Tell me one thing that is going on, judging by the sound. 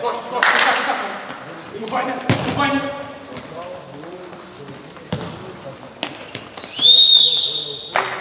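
A futsal ball is kicked hard in an echoing indoor hall.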